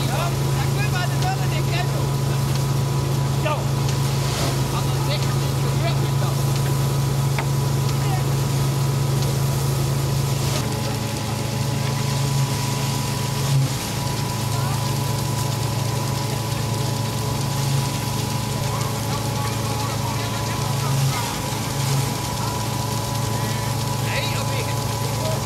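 A threshing machine hums steadily with a low drone.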